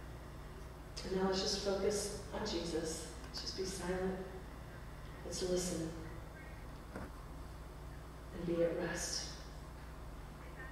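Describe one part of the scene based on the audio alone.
A woman speaks calmly through a microphone.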